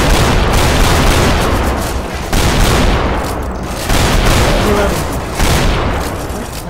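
A shotgun fires loud, booming blasts at a steady pace.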